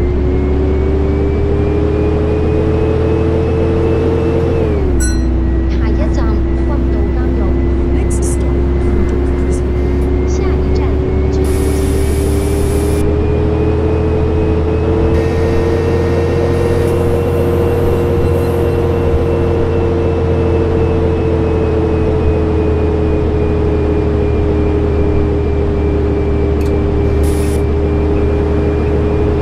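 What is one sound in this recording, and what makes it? A bus engine hums steadily, its pitch dropping with a gear change and then slowly rising and falling.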